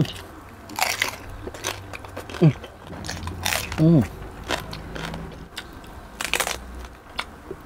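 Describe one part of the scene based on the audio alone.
A young man bites into crunchy crackling skin close to a microphone.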